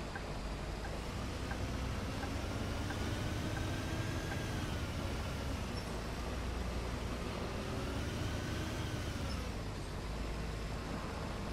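A bus engine hums steadily, rising and falling slightly in pitch.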